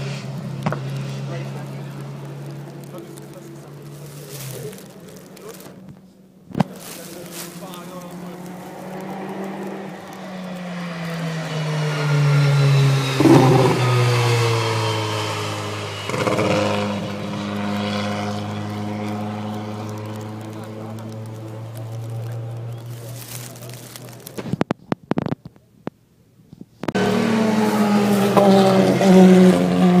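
Racing car engines roar past on a track, their pitch rising and falling.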